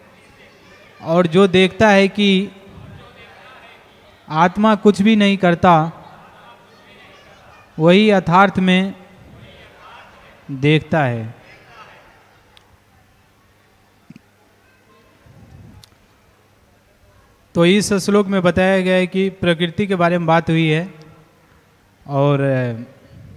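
A man chants verses into a microphone in short melodic phrases, with pauses between them.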